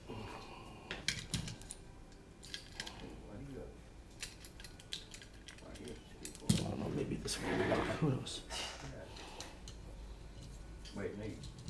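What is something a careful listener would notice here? Small plastic and metal parts click and rattle on a bench.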